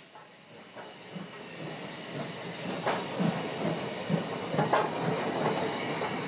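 A steam locomotive chugs and clanks in a steady rhythm as it moves.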